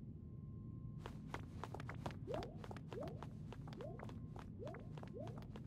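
Quick footsteps run over hard stone.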